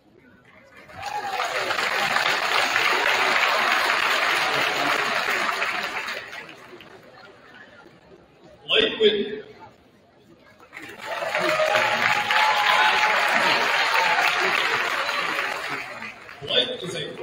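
A large crowd applauds and cheers in a big echoing hall.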